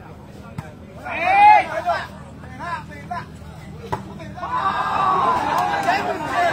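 Nearby men cheer loudly.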